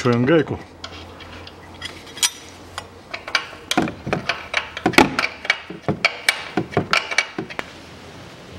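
A metal wrench clinks and taps against metal parts.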